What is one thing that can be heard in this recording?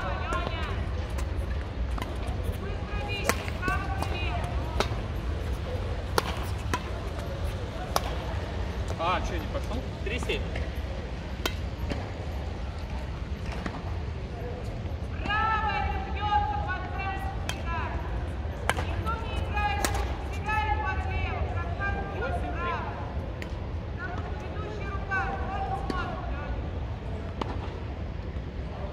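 Badminton rackets sharply strike a shuttlecock back and forth in a large echoing hall.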